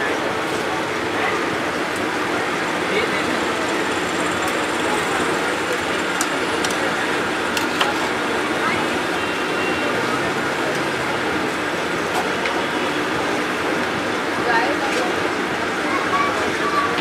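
Hot oil bubbles and sizzles loudly and steadily.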